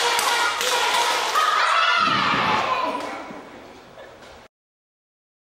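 Young children sing together.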